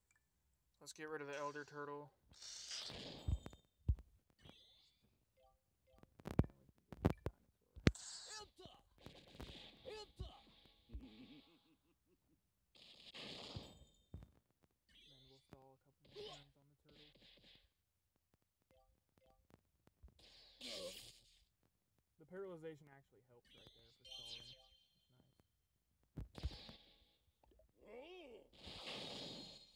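Game sound effects of punches and blows ring out in quick bursts.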